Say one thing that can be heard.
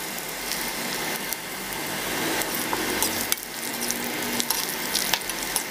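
Food sizzles and crackles in hot oil in a wok.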